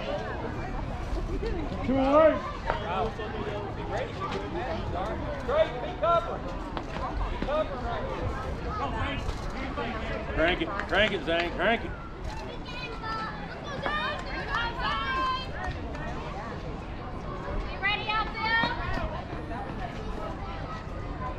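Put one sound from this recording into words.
Children and adults shout and cheer from across an outdoor ball field.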